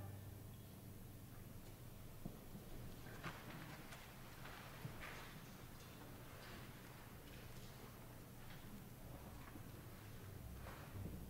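A choir sings softly.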